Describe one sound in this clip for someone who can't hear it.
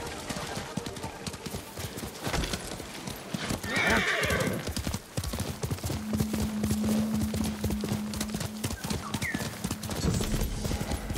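Plants rustle and swish as a horse pushes through them.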